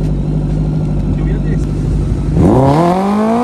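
A supercharged sport motorcycle idles.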